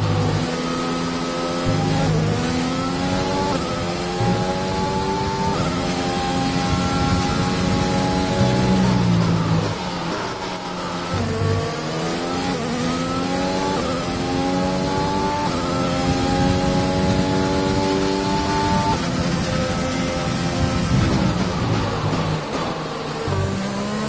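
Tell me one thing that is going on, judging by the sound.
A racing car engine whines at high revs, shifting gears up and down as it speeds along.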